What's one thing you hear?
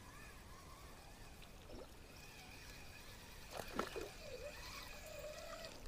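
A fishing reel whirs softly as its handle is wound.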